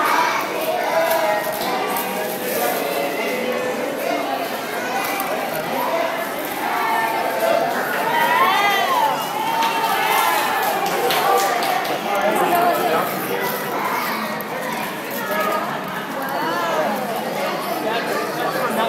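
Wrapping paper crinkles and tears.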